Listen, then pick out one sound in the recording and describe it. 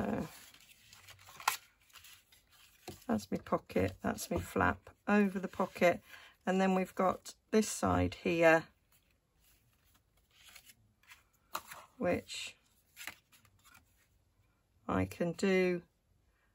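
Stiff paper rustles and crinkles as it is folded and handled.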